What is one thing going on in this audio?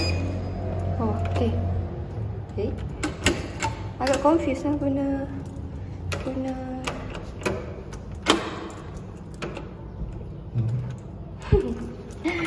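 A metal door handle clicks as it is pressed down.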